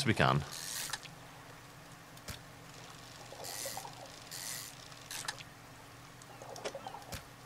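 A small boat engine hums steadily.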